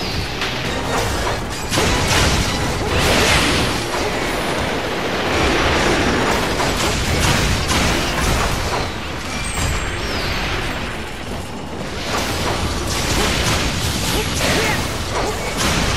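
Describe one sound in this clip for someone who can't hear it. A large beast roars and stomps.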